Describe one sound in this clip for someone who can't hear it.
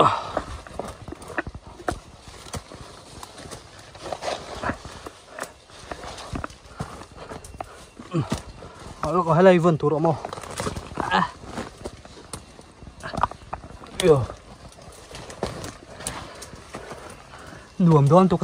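Footsteps crunch on dry leaves and stones.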